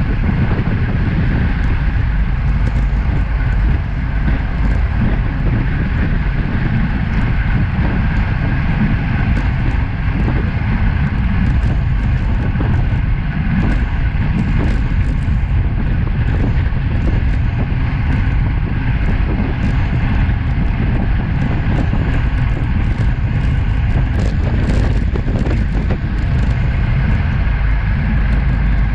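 Wind roars loudly across a microphone outdoors.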